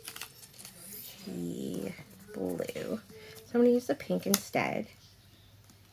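Paper pages rustle under a hand.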